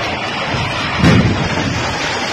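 A heavy crash booms out once.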